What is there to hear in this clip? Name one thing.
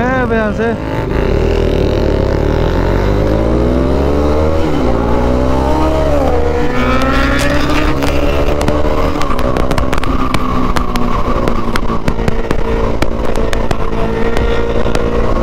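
A motorcycle engine drones and climbs in pitch as it speeds up.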